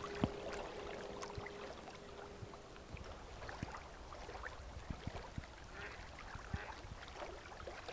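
Water laps gently against stones.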